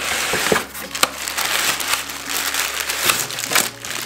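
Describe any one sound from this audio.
Plastic wrapping crinkles as it is handled.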